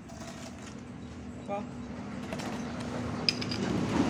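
A hoe scrapes and thuds into soil.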